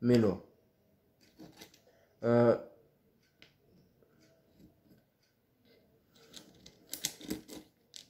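Wooden pegs tap into a wooden board.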